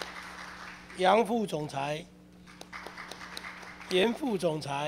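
A middle-aged man speaks formally into a microphone.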